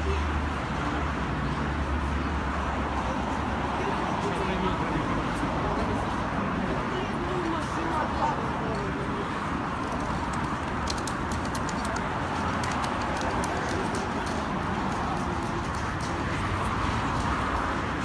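Men and women talk quietly nearby.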